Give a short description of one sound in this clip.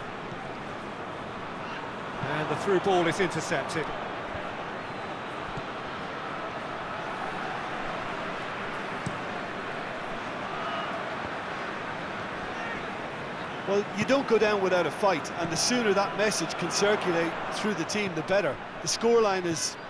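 A large stadium crowd murmurs and roars steadily in the background.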